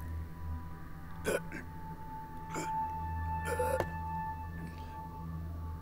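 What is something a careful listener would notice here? An elderly man groans in pain.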